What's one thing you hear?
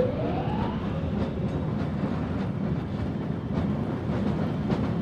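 A heavy machine rumbles steadily as it rides along a track.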